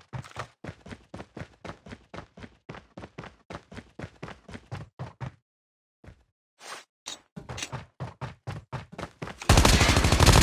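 Footsteps tread quickly and evenly across a hard floor.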